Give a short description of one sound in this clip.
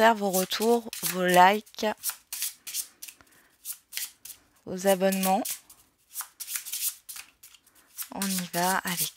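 Playing cards are shuffled by hand, riffling and slapping softly.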